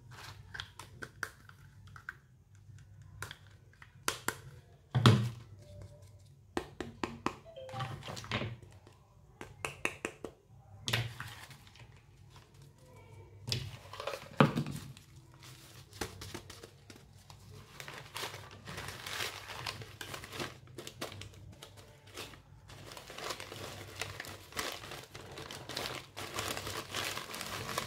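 Plastic toys clack and knock together as they are handled.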